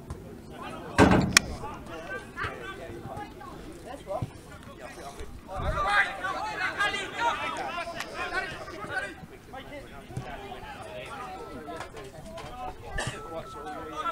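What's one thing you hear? A football is kicked on a grass pitch.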